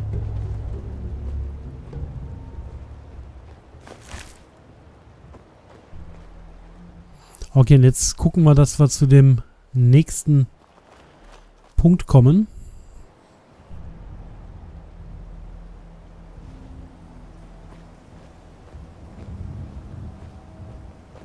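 Footsteps crunch over gravel and boards.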